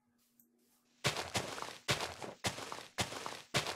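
A shovel digs into dirt with repeated crunching scrapes.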